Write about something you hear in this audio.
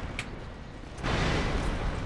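A sword clangs against metal armour.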